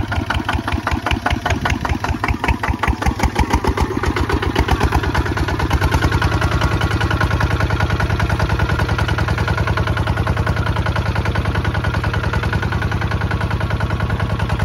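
A single-cylinder engine chugs steadily and loudly close by.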